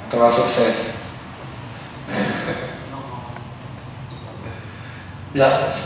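A young man speaks loudly into a microphone in an echoing hall.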